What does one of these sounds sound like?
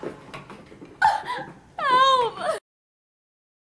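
A young woman cries out in distress.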